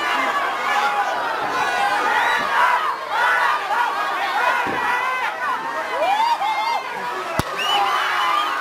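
A crowd of young women and men shouts and cheers excitedly nearby.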